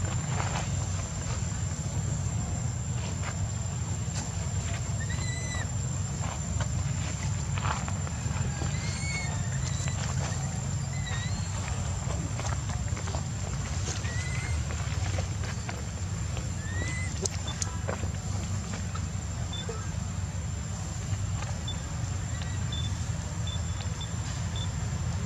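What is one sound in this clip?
Dry leaves rustle under a monkey's feet.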